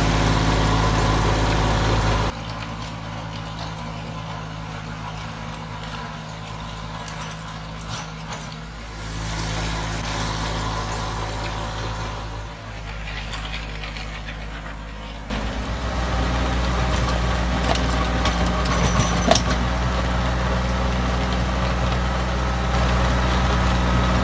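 A tractor engine hums steadily close by.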